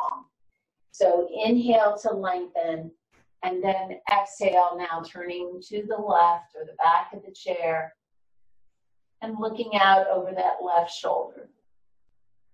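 A middle-aged woman speaks calmly and clearly, close to a microphone.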